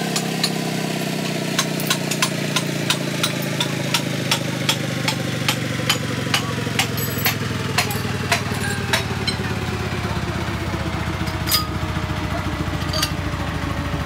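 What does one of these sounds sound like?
Metal gear parts clink and knock together as they are handled.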